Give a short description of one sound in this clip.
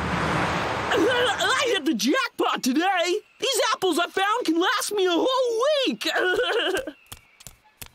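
A cartoon male voice speaks with animation in a high, wavering tone.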